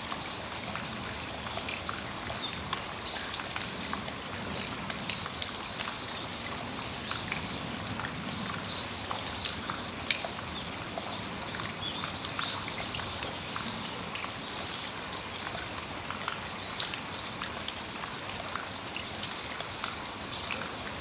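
Water drips from the edge of an awning.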